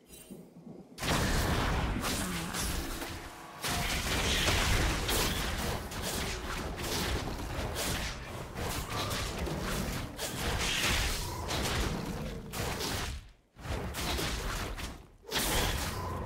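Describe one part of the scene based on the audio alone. Video game combat sound effects clash and burst.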